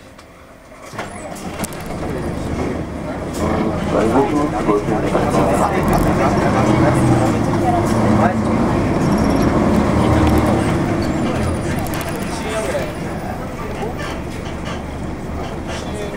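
A vehicle's engine rumbles steadily as it drives along.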